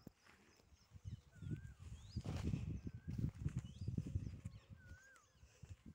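A plastic tarp rustles in the wind.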